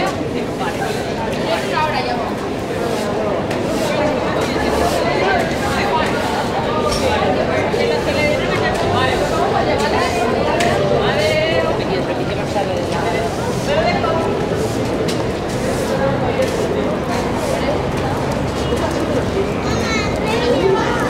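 A crowd of pedestrians chatters nearby outdoors.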